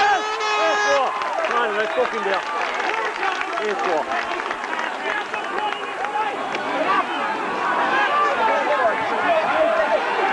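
A crowd of spectators shouts and chatters outdoors.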